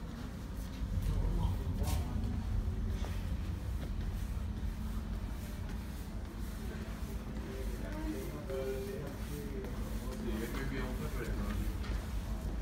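A low rumble of an underground train fills an echoing hall.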